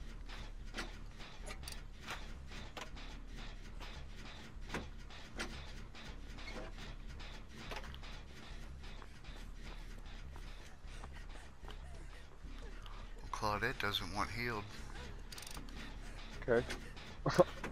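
A generator rattles and clanks as it is being repaired.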